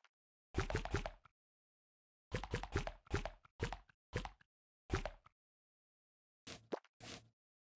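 A blade slices through soft fruit with wet squelches.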